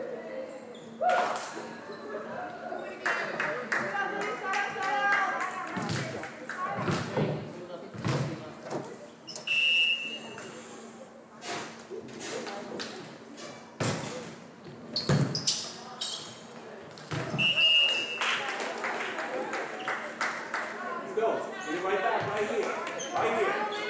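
A volleyball is hit with sharp thuds in a large echoing gym.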